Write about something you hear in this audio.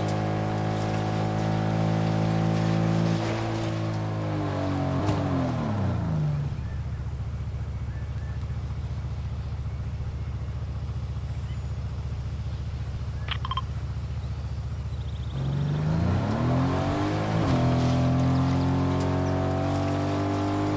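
A vehicle engine hums, slowing down to a low idle and then revving back up.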